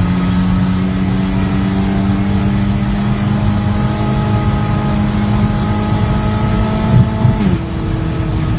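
A car engine roars loudly as it speeds up at high revs.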